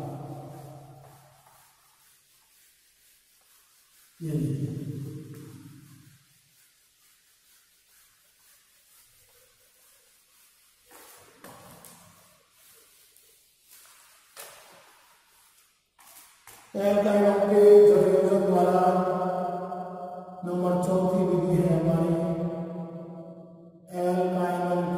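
An elderly man speaks slowly and clearly, as if lecturing.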